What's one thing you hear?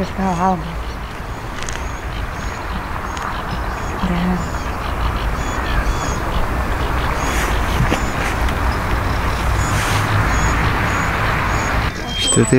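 A coot dabbles and pecks at the water's surface.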